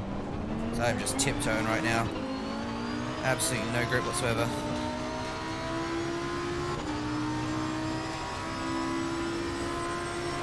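A racing car engine drones steadily and revs through its gears.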